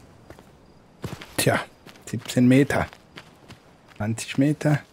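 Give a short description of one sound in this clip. A man speaks into a close microphone in short bursts.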